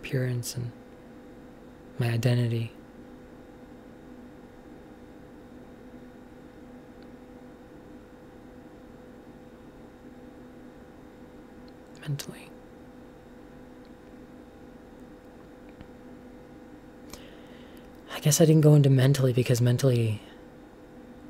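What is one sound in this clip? A young woman speaks briefly and quietly into a nearby microphone, with long pauses.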